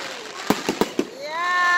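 A firework whistles as it rises.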